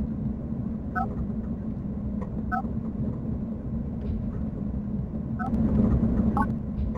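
Short electronic menu beeps chirp now and then.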